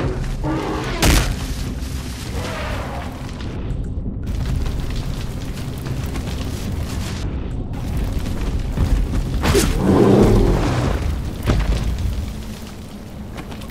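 A spear thuds into a large beast.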